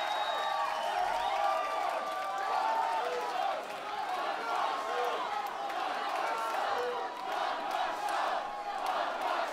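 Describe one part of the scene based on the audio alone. A large crowd cheers and whistles in a big echoing hall.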